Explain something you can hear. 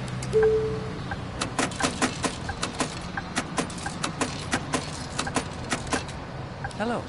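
Coins clatter and click into a tray.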